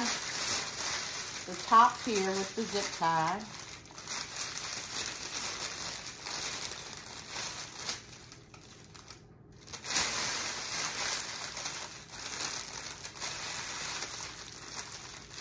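Plastic wrapping crinkles and rustles.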